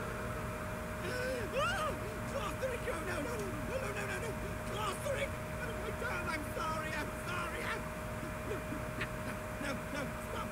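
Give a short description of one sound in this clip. A young man talks calmly and close to a microphone.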